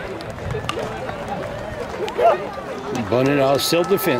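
A metal bat strikes a baseball with a sharp ping.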